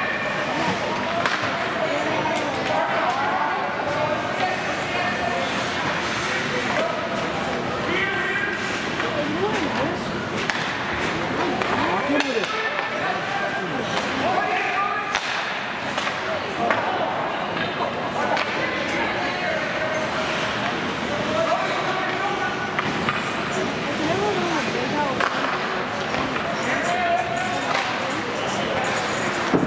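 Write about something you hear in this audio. A crowd of adult spectators chatters and calls out in an echoing rink.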